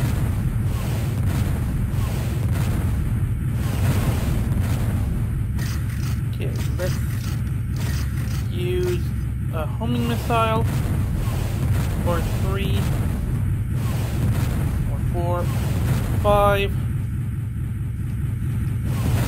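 A spacecraft engine hums low and steadily.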